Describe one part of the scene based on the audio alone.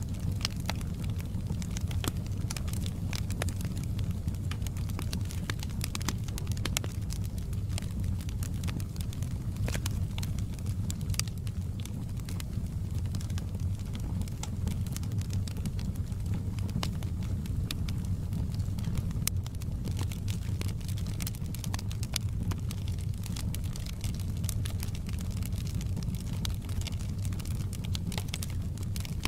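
A wood fire roars steadily with a low rumble.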